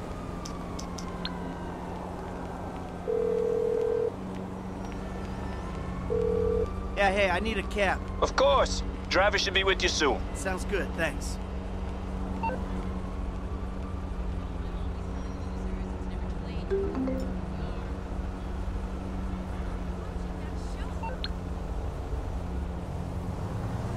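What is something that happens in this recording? Traffic hums steadily nearby.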